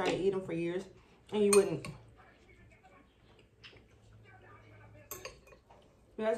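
A fork scrapes and taps against a glass bowl.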